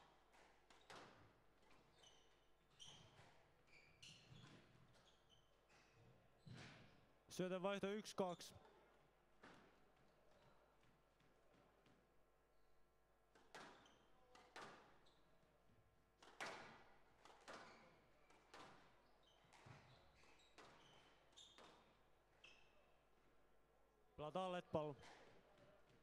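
A squash ball smacks sharply against the walls again and again, echoing around a hall.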